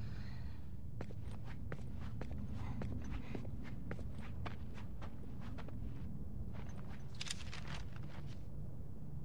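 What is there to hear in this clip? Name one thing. Footsteps patter on a hard floor.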